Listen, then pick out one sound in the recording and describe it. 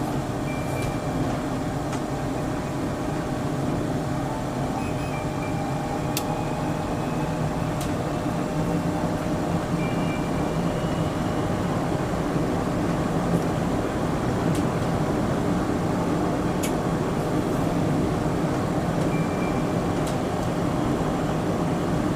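A train hums and rumbles steadily along an elevated track.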